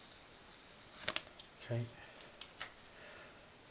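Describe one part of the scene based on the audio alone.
Small plastic and metal parts click and tap.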